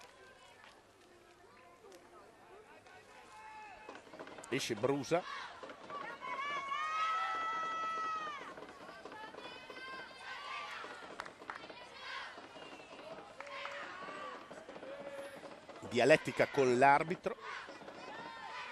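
A large crowd shouts and whistles in an open stadium.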